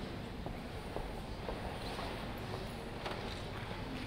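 Footsteps tap softly on a hard floor in a large echoing hall.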